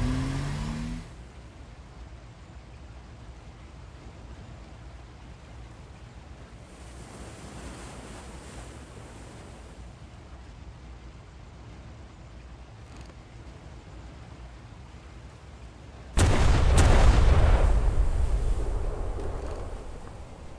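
A ship's engine hums low and steadily as its hull cuts through water.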